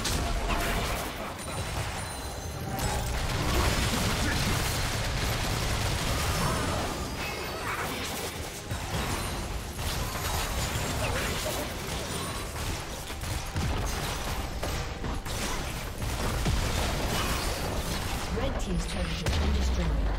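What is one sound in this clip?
Game spell effects whoosh and blast in a busy fight.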